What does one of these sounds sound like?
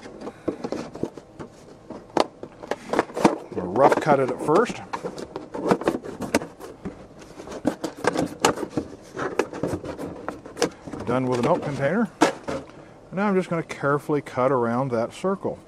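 Scissors snip and crunch through stiff plastic.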